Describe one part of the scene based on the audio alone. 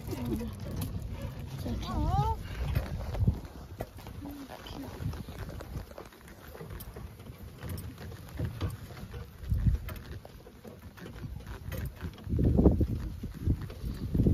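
A horse-drawn carriage rolls over grass.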